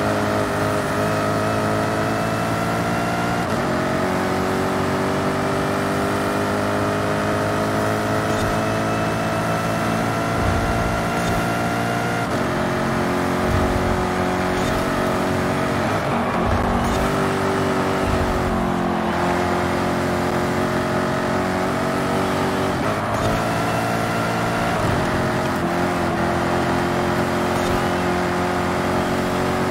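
A sports car engine roars at high speed, its pitch climbing and dropping as it shifts gears.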